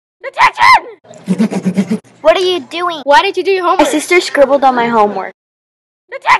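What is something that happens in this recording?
A girl speaks with animation in an upset voice.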